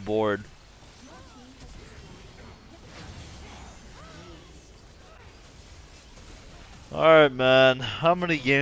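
Game fighting sounds whoosh and clash.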